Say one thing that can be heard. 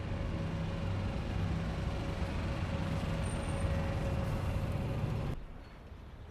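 A bus engine rumbles as the bus drives past close by.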